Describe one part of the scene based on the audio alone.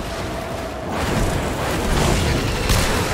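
A robot explodes with a loud burst.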